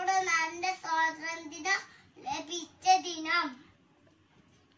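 A young boy speaks clearly and recites close to the microphone.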